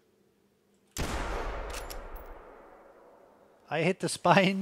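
A rifle fires a single loud shot that rolls away in a long echo.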